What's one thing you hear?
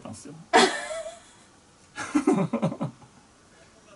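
A woman laughs close to a microphone.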